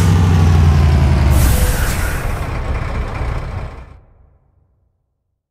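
A truck engine rumbles low and steady, then fades away.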